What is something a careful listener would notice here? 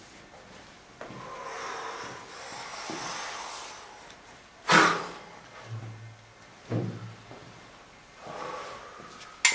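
A man speaks softly nearby.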